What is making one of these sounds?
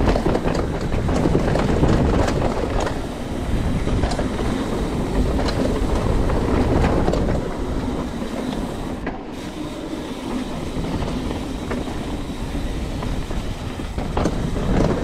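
Wind rushes past the rider in a low roar.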